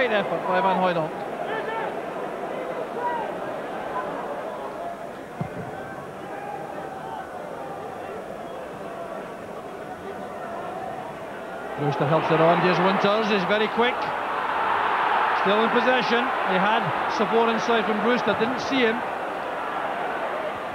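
A large stadium crowd murmurs and then roars loudly.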